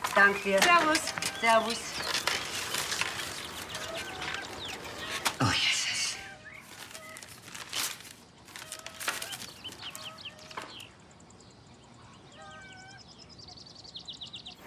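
A sheet of paper rustles as it is unfolded.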